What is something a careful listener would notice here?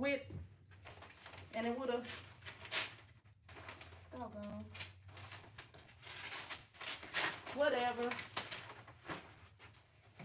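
Paper rustles as it is unrolled.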